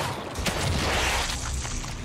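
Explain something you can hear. A gunshot bangs.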